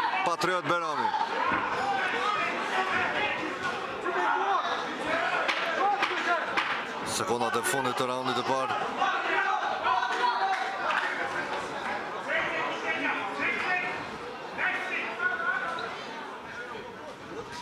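A crowd of spectators shouts and cheers in a large hall.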